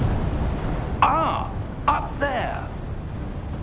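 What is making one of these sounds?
A woman speaks briefly and calmly.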